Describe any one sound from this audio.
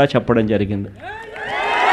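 A man speaks loudly through a microphone.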